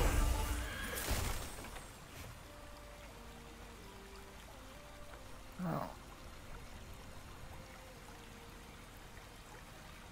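Soft, slow music plays with long held notes.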